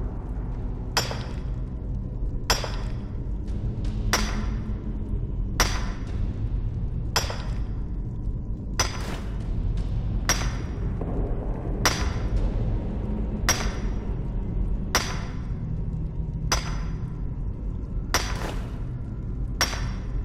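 A pickaxe strikes rock with sharp, ringing clinks at a steady pace.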